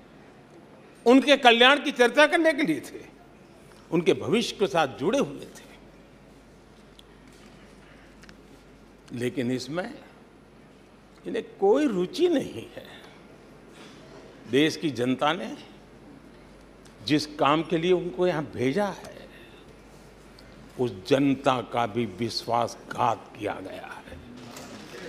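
An elderly man speaks firmly into a microphone, with pauses between phrases.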